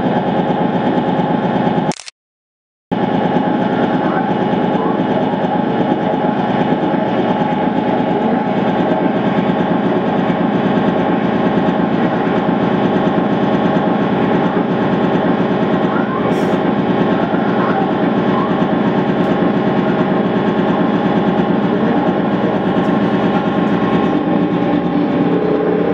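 Dense, droning electronic music plays live through loudspeakers.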